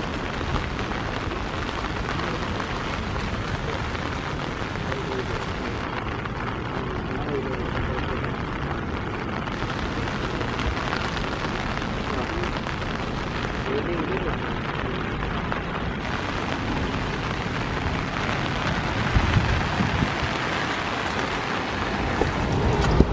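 Heavy rain pours steadily and patters on wet paving.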